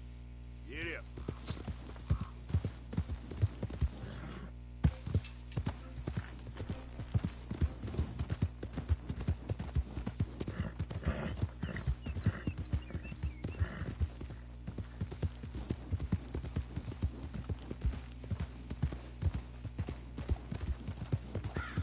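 Horse hooves thud quickly on grass and dirt.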